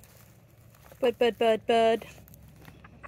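A hen gives a quick burst of loud, sharp squawks.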